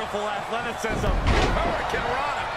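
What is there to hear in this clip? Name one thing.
A body slams heavily onto a wrestling ring mat with a deep thud.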